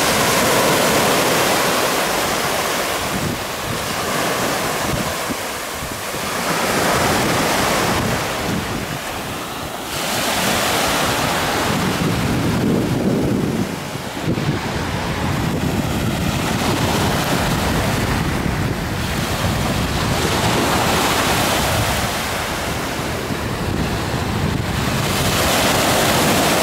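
Small waves wash and break on a beach, rising and falling.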